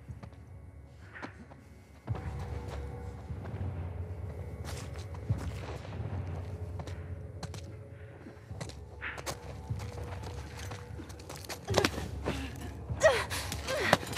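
Soft footsteps creep slowly across a hard tiled floor.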